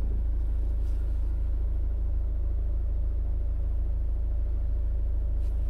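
A car engine hums low and steady, heard from inside the car.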